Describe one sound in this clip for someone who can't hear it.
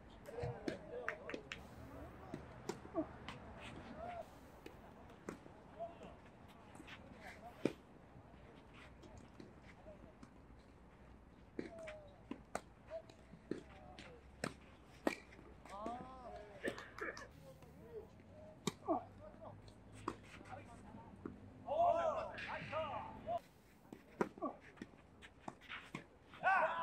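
Tennis balls are struck with rackets in a sharp, repeated pop.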